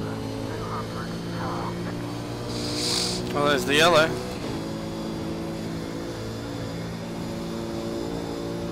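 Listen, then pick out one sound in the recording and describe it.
A race car engine drones steadily and shifts pitch through the gears.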